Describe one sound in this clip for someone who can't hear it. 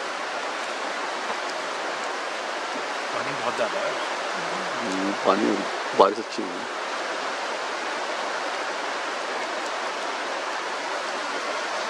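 A shallow river rushes steadily over stones.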